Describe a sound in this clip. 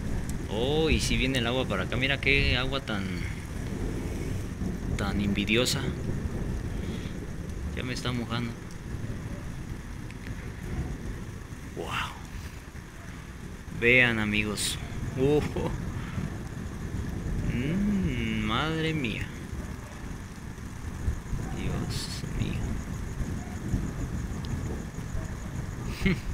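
Thunder rumbles in the distance.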